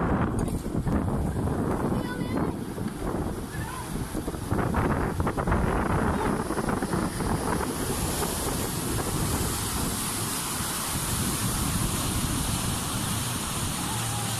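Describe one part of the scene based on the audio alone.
Floodwater rushes and churns loudly over stones, outdoors in wind.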